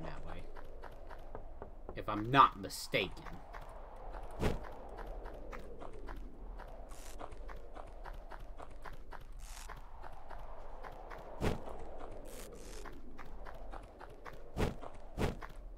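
Short thuds sound as a game character lands from jumps.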